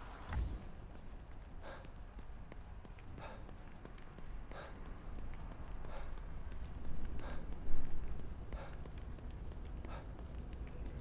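Footsteps run on wet pavement.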